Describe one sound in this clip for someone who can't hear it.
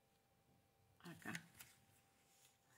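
Paper rustles and crinkles softly.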